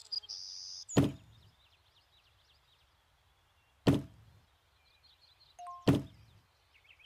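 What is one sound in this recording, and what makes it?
A metal locker thuds into place.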